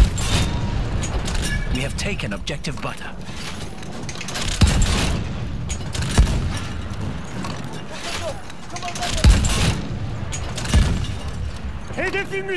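A metal breech clanks as a shell is loaded.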